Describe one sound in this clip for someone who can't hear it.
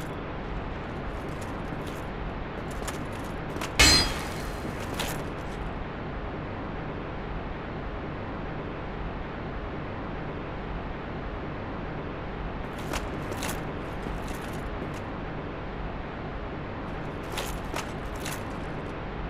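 Armor clanks with heavy footsteps on stone.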